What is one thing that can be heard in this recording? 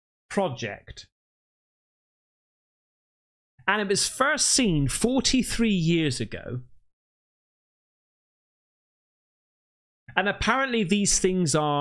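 A man speaks closely into a microphone, with pauses between phrases.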